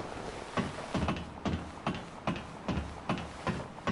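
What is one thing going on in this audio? Boots clank rhythmically on metal ladder rungs.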